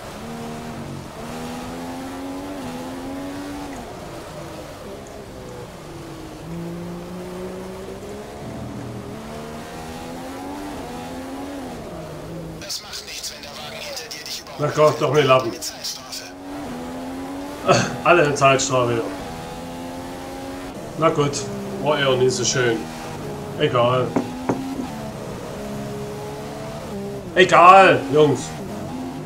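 A racing car engine whines, rising and falling in pitch as the car speeds up and slows down.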